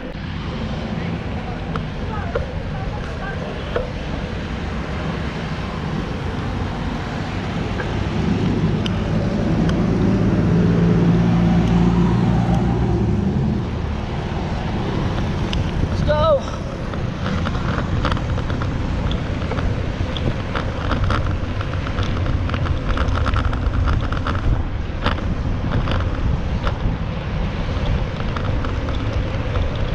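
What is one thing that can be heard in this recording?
Wind buffets steadily outdoors as a bicycle rolls along.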